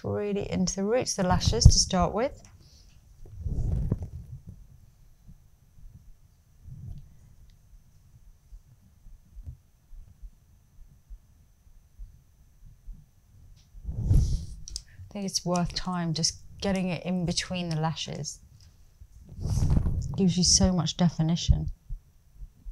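A woman speaks calmly and close to a microphone.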